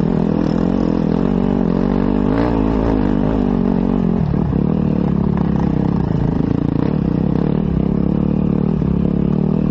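A dirt bike engine revs loudly up close, changing pitch as it climbs.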